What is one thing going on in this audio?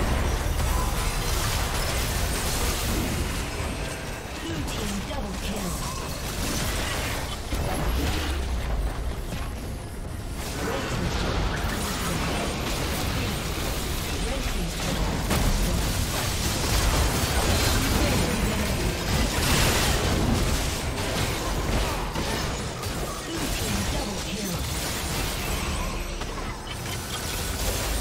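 Game spell effects whoosh and crackle amid clashing hits throughout.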